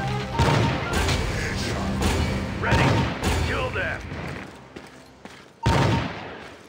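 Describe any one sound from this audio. A rifle fires loud, booming shots that ring out briefly.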